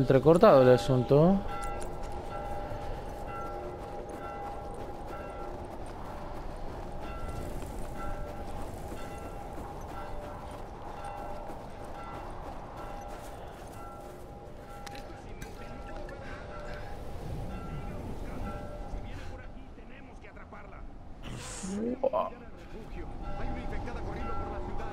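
Strong wind howls steadily through a snowstorm.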